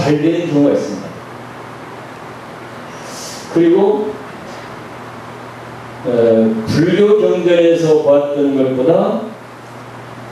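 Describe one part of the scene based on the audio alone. An elderly man speaks calmly into a microphone, in short phrases with pauses.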